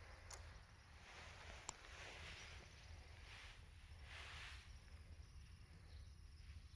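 A dog sniffs the ground in quick bursts, close by.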